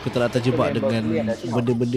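Magic spells crackle and clash in a fight.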